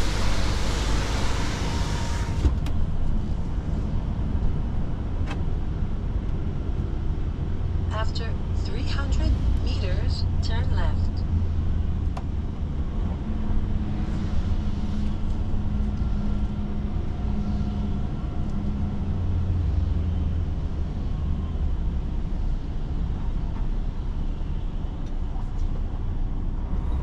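A truck engine rumbles low and steady from inside the cab.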